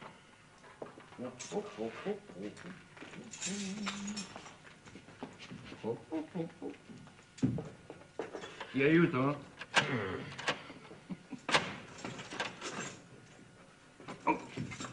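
Men talk in low voices.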